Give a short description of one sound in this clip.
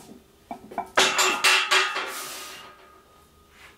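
A man breathes out hard with effort.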